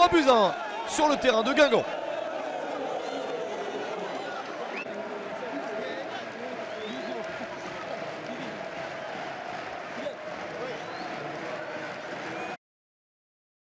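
A large stadium crowd cheers and chants loudly outdoors.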